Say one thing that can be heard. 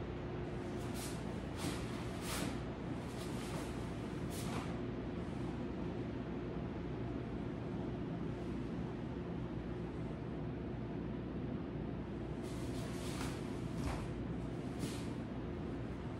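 Bare feet thud and shuffle on foam mats.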